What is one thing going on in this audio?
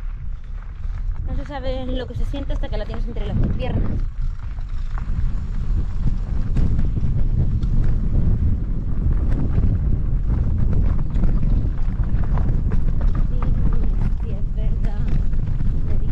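Wind rumbles loudly against a microphone outdoors.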